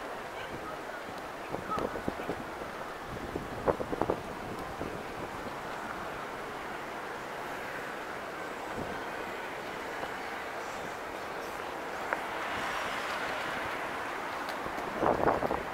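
A city street hums steadily outdoors.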